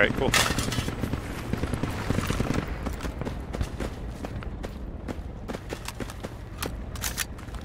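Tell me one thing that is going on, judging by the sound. Footsteps crunch steadily on loose gravel.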